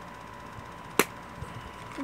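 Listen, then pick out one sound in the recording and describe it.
A toy bus is set down on a soft cloth with a light knock.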